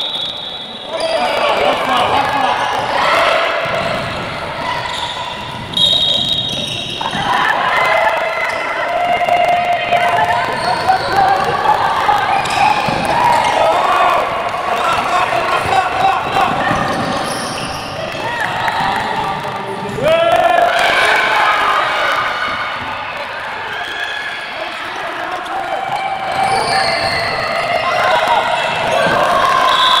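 Spectators murmur and shout in an echoing hall.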